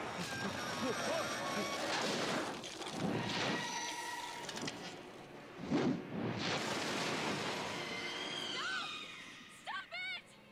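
A deep rushing whoosh swells and fades.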